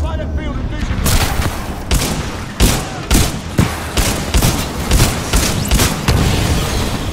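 Gunfire bursts out in sharp, rapid shots.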